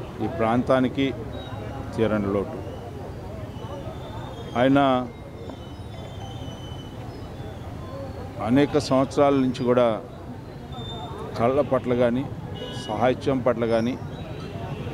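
A middle-aged man speaks calmly into microphones close by, with pauses.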